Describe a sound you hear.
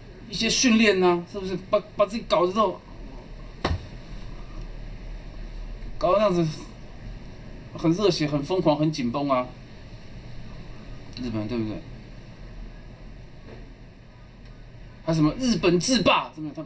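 A man talks up close in bursts, with short pauses.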